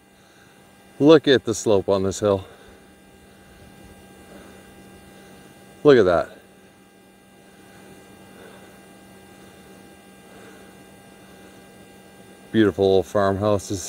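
A man speaks calmly close to the microphone, in short bursts.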